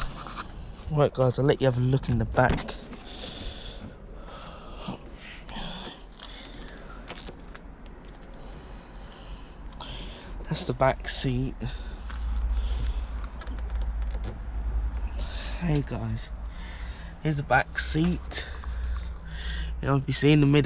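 A young man talks close by, calmly.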